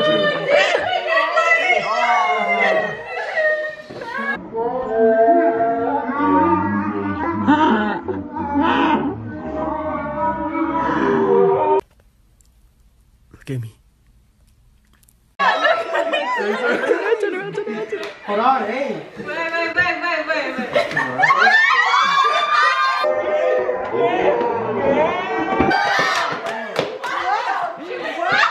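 Several women talk and exclaim excitedly, close by.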